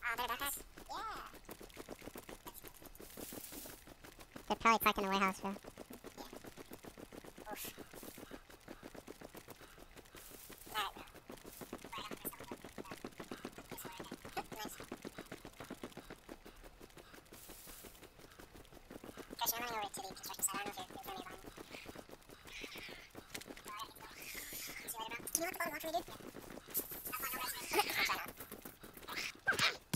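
Footsteps thud quickly on grass and gravel as someone runs.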